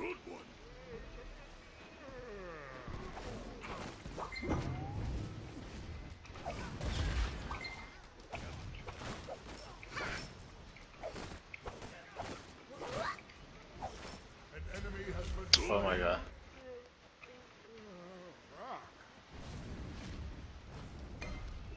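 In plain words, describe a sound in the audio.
Sound effects from a fantasy battle video game clash and burst.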